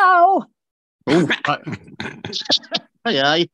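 An older woman speaks calmly and clearly.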